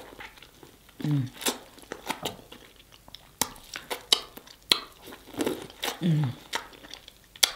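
A young woman hums with pleasure between bites.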